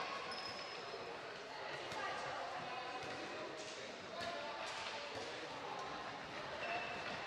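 Sneakers squeak sharply on a floor in a large echoing hall.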